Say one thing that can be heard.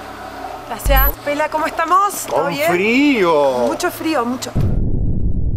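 A young woman speaks cheerfully close to a microphone.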